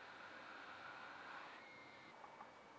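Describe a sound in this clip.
A hot air gun blows with a soft, steady hiss.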